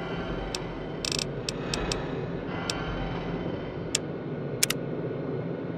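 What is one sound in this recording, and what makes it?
Soft clicks and beeps sound as menu items are selected.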